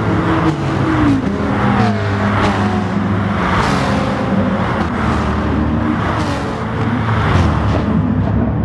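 A racing car speeds past with a rising and falling whoosh.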